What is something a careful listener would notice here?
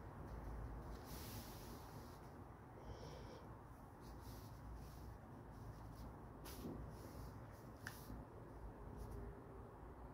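Paper rustles as an arm brushes across it.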